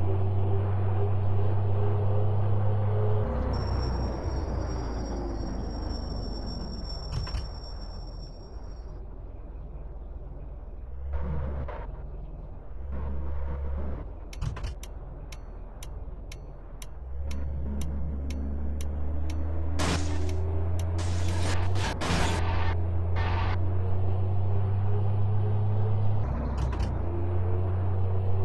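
A truck engine drones steadily, rising and falling as it speeds up and slows down.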